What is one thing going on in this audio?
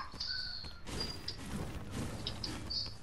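A pickaxe strikes a tree with a sharp thwack.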